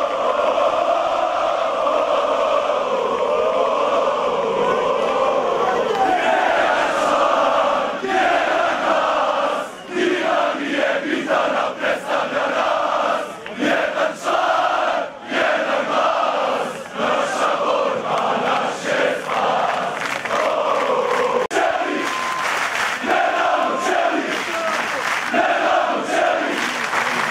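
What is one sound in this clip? A large crowd of men chants in unison outdoors.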